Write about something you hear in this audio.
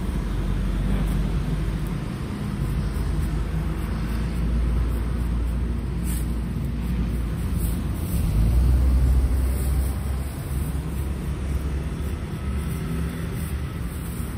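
A knife slices through a pineapple's skin.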